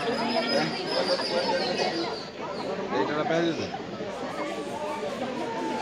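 A crowd of men and women murmurs and talks nearby.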